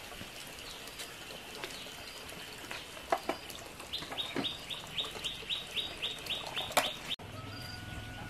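Sandals scuff and tap on a concrete floor.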